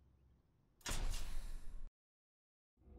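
A loud whooshing menu transition sound plays, then cuts off abruptly.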